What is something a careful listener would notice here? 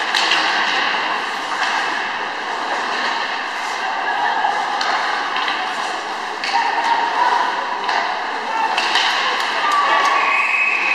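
Hockey sticks clack against the puck and ice.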